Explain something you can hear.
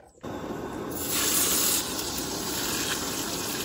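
Bacon sizzles loudly in a hot pan.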